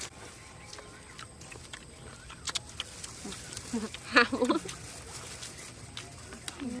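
Young women slurp and chew noodles up close.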